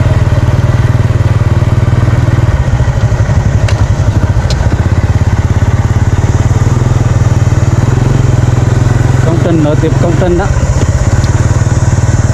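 A small motorbike engine putters steadily nearby.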